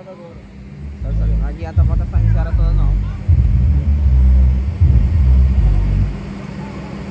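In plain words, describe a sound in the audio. Deep, booming bass music thumps loudly from large loudspeakers.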